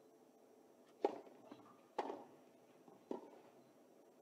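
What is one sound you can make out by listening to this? A tennis ball is struck sharply by rackets in a rally.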